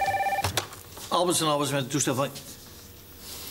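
A man speaks briefly into a telephone nearby.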